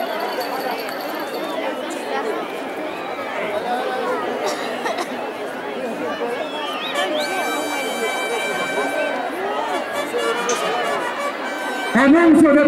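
A large crowd chatters and calls out across an open arena.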